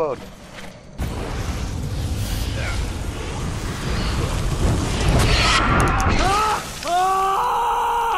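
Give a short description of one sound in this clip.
A fire roars loudly.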